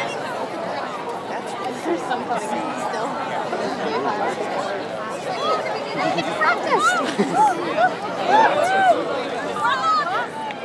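A large flock of small birds chatters and chirps constantly overhead, growing louder.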